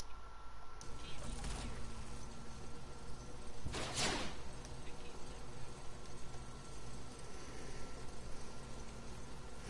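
A zipline whirs as a game character slides along a cable.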